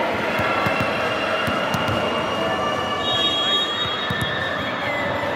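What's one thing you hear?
Volleyballs thud against hands and the floor in a large echoing hall.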